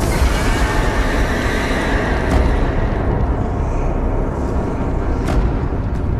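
Heavy stone doors rumble and grind as they slide open.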